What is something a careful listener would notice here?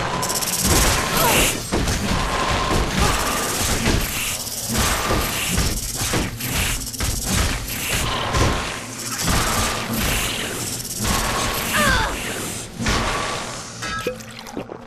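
Weapons clash and strike in a rapid, noisy fight.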